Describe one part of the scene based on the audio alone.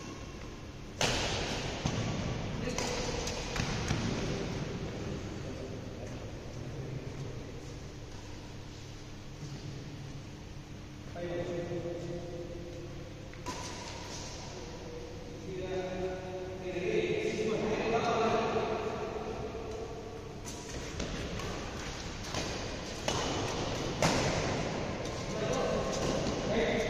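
Badminton rackets hit a shuttlecock in an echoing hall.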